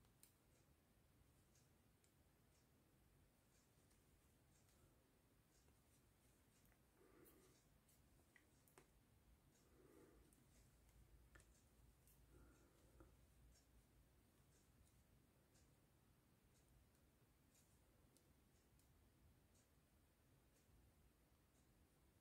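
Knitting needles click and tick softly against each other.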